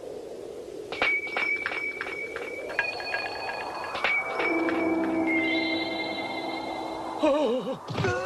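A pocket watch plays a tinkling chime tune.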